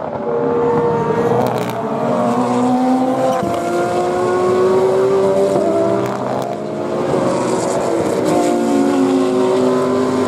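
Several GT racing car engines roar at high revs, rising and falling in pitch as the cars pass.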